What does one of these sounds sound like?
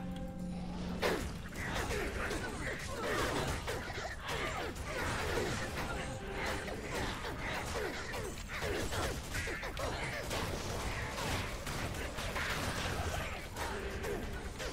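Fiery spell impacts crackle and burst.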